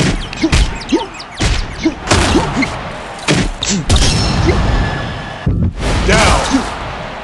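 Punches land with heavy, dull thuds.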